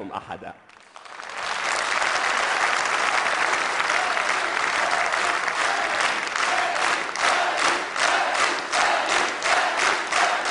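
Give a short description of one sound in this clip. A large audience cheers and applauds loudly.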